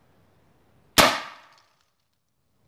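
A gunshot cracks close by and rings out briefly.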